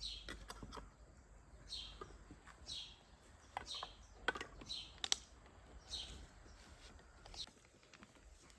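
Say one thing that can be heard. Glass jars clink against each other on a table.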